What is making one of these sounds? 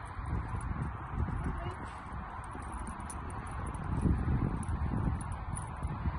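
A dog runs across grass.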